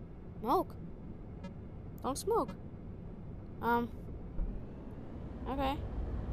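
Short electronic chirps sound as cockpit buttons are pressed.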